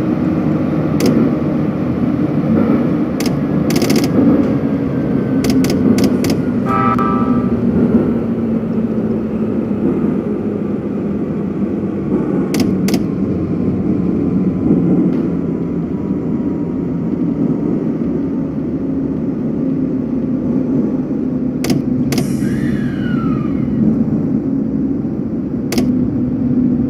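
Train wheels clack sharply over rail joints.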